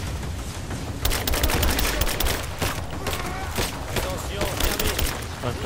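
Rapid gunfire crackles in bursts.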